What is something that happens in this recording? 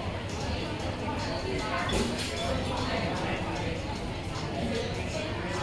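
Cups and dishes clink.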